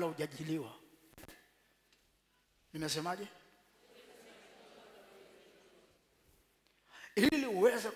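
A man preaches with animation through a microphone in a large echoing hall.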